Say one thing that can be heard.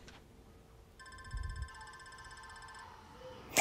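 Electronic game chimes twinkle softly.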